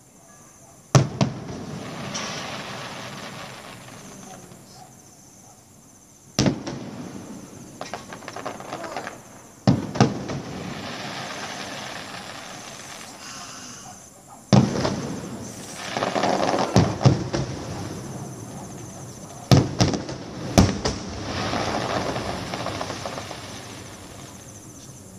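Fireworks crackle and fizzle after each burst.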